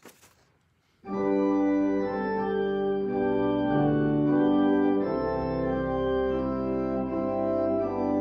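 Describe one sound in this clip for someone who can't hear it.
An organ plays sustained chords.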